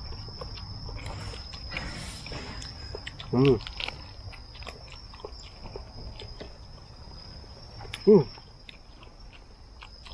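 Men chew and smack their lips loudly, close by.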